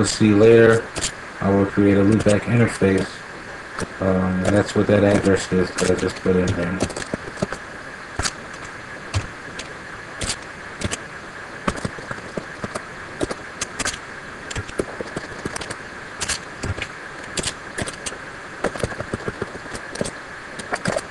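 Keys click on a computer keyboard in short bursts.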